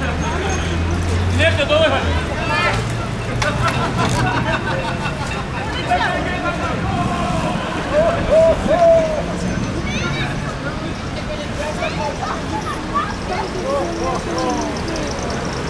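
Cyclists call out and chatter as they ride by.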